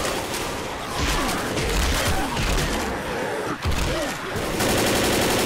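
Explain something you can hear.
Zombies growl and snarl nearby.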